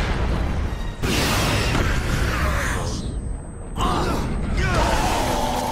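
A heavy hammer slams down with a booming crash.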